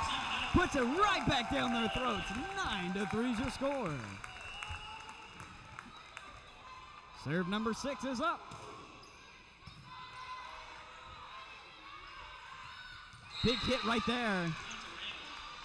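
Young women shout and cheer in chorus in a large echoing gym.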